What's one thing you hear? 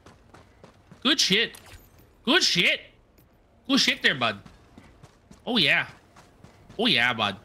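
A man speaks loudly and with animation into a close microphone, in short bursts.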